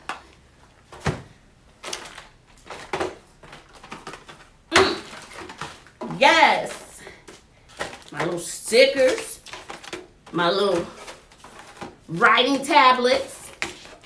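Cardboard and plastic packaging rustle and crinkle as items are unpacked.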